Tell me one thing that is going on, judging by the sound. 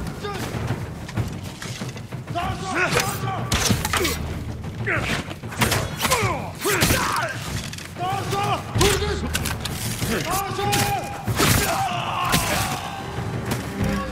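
Swords clash and strike sharply again and again.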